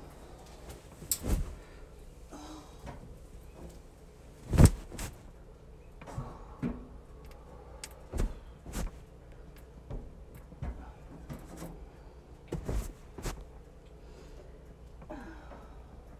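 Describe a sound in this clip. Clothes rustle and thump as they are handled close by.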